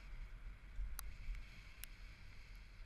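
A bicycle rattles with sharp clicks over bumps.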